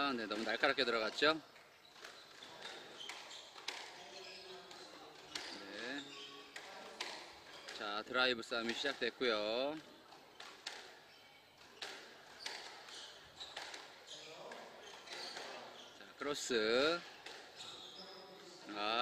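A squash ball smacks sharply against rackets and walls in an echoing court.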